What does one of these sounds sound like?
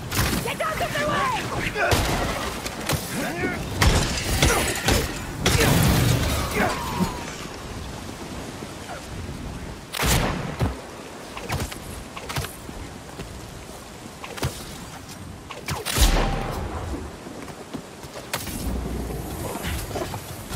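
Punches thud and smack in a fight.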